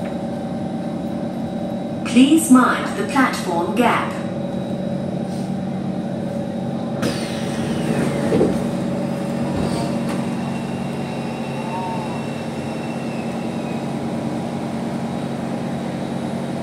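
A train rumbles and hums steadily.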